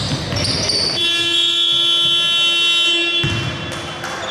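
A loud buzzer sounds in a steady tone.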